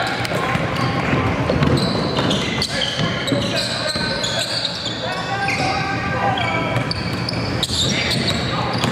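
A basketball bounces with hollow thuds in a large echoing gym.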